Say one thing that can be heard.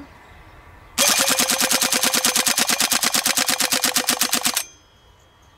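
A gun fires a long, rapid burst of shots.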